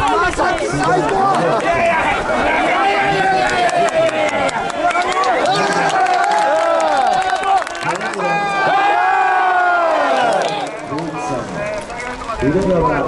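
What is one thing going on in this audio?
Hands clap in rhythm among the crowd.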